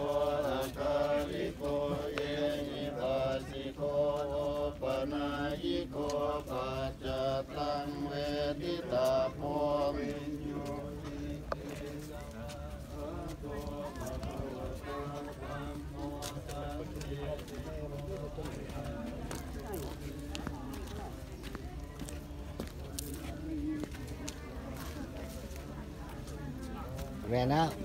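Several men chant together in steady low voices outdoors, loud at first and then fainter.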